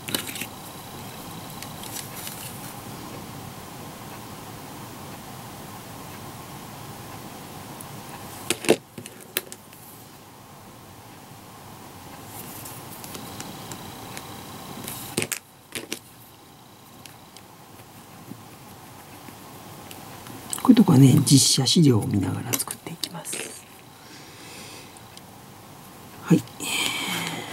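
Small plastic pieces click and tap together in someone's fingers.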